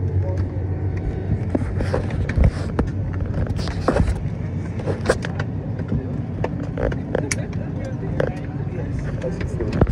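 Aircraft engines hum in a low, steady drone inside the cabin.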